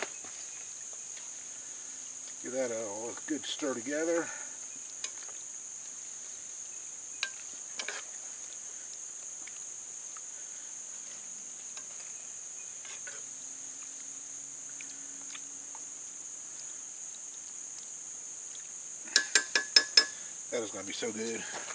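A metal spoon scrapes and clinks against an iron pot while stirring a thick stew.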